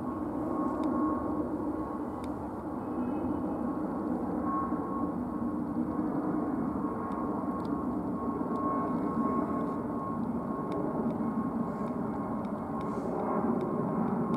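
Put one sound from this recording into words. A jet airliner roars steadily overhead as it passes low.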